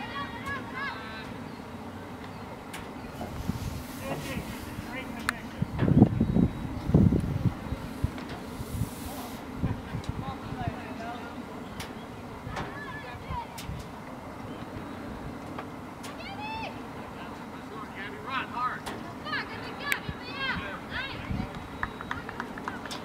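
Young women shout to each other across an open field, far off.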